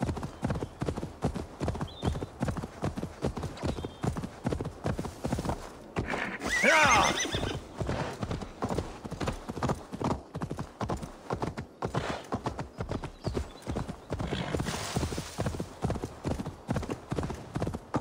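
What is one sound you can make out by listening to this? Hooves gallop quickly over soft ground.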